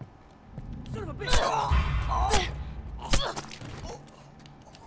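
Heavy blows thud and scuffle in a close struggle.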